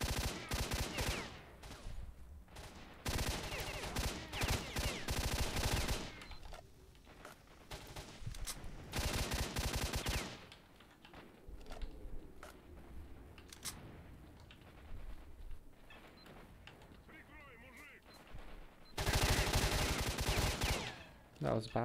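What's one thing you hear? An assault rifle fires in rapid bursts.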